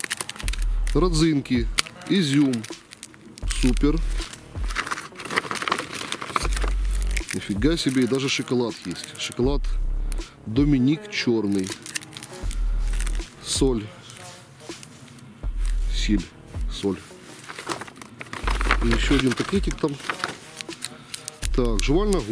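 Plastic wrappers crinkle and rustle in hands close by.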